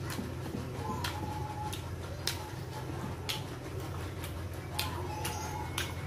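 Fingers squish and pick at rice and food.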